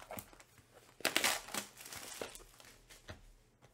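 Plastic wrap crinkles and tears as hands unwrap a box.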